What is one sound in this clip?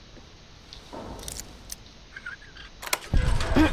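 A lock pick scrapes and clicks inside a lock.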